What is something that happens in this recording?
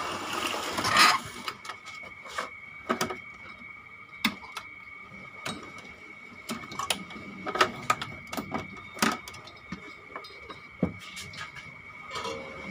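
Wires and a circuit board knock and rattle as they are handled.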